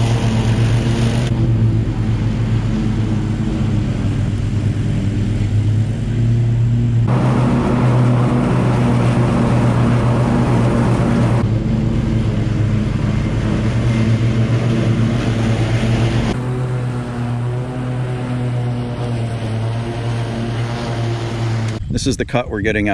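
A riding lawn mower engine drones steadily nearby.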